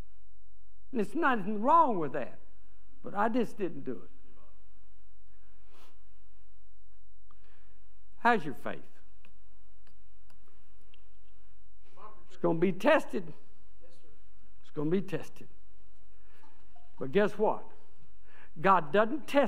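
An elderly man speaks slowly and deliberately through a microphone, with pauses between phrases.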